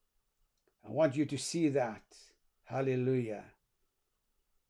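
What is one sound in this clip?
An older man speaks calmly and slowly into a close microphone.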